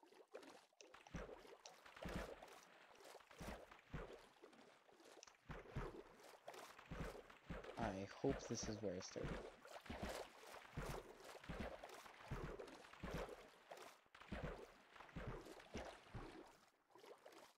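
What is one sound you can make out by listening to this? Water splashes with steady swimming strokes.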